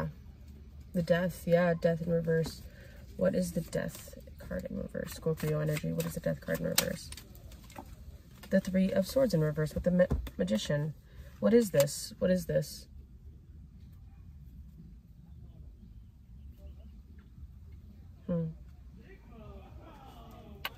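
Paper cards shuffle and rustle in hands.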